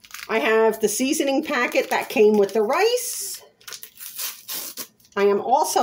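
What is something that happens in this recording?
A paper packet crinkles in someone's hands.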